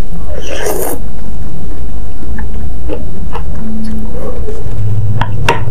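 A woman chews food wetly, close to a microphone.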